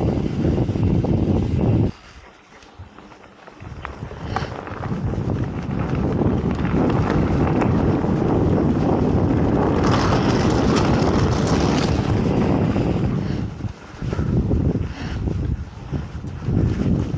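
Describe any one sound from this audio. Tyres of a mountain bike roll and rumble over a dirt trail.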